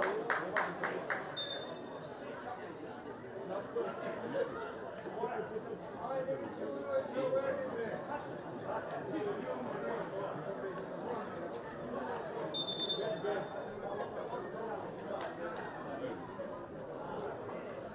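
A small crowd murmurs and calls out in an open stadium.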